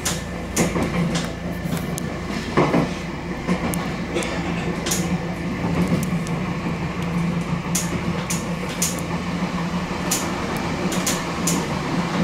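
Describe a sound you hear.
A train hums steadily as it runs along the rails.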